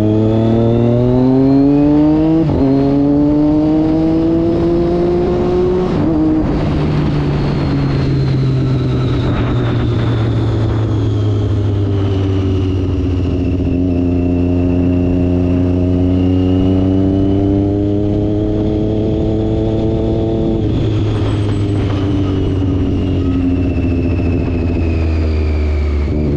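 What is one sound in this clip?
A motorcycle engine roars close by, revving up through the gears.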